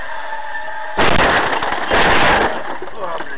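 A vehicle crashes with a loud, sudden impact and rattling.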